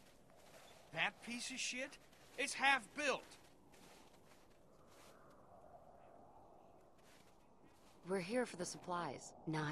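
A young man speaks with a tense, hushed voice.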